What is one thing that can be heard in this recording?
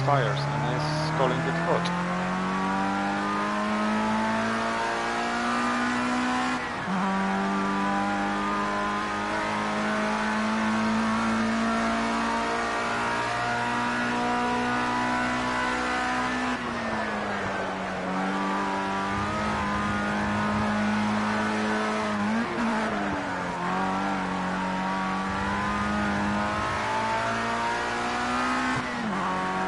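A racing car engine screams at high revs, rising through the gears and dropping as it slows for corners.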